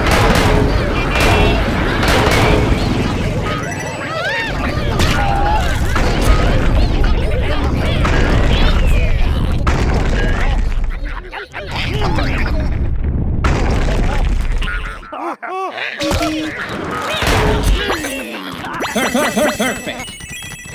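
Cartoonish zombie voices groan and gurgle.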